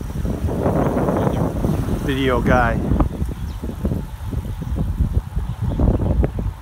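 Wind buffets and rushes past while cycling outdoors.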